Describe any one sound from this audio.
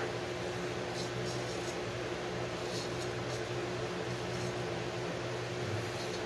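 A safety razor scrapes across stubble.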